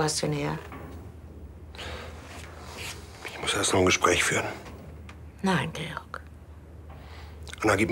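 An older man speaks quietly and gravely, close by.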